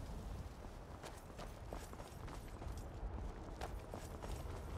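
Footsteps crunch on a stone path.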